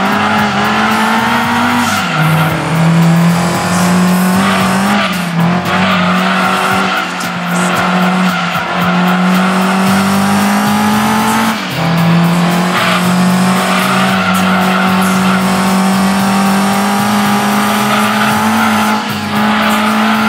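A car engine revs high and whines, dropping in pitch at each gear change.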